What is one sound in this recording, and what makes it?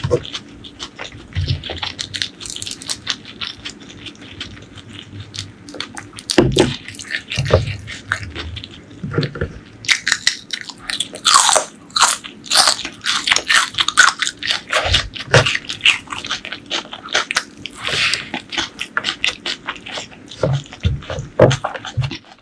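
A woman chews food loudly and wetly close to a microphone.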